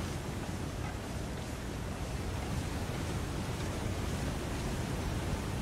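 Wind blows steadily outdoors in a snowstorm.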